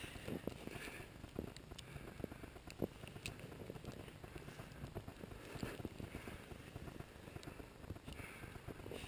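Footsteps crunch through snow at a steady walk.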